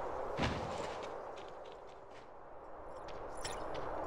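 Quick footsteps patter as a game character runs.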